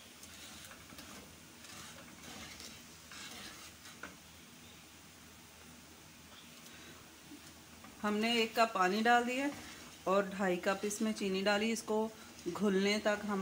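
A wooden spatula stirs and scrapes through a thick liquid in a pan.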